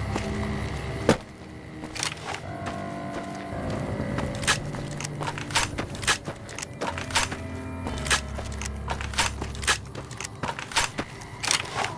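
A gun clicks and rattles as it is handled.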